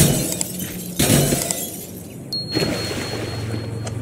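Water splashes as a body plunges into a pool.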